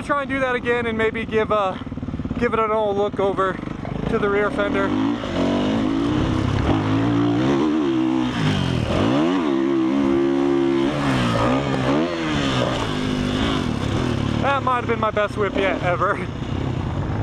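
A dirt bike engine revs up and down, roaring loudly close by.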